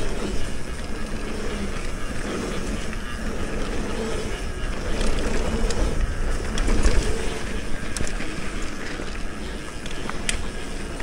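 Wind rushes past, rumbling steadily.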